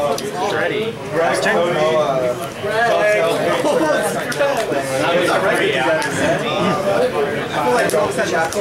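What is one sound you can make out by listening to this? Playing cards tap and slide on a cloth mat.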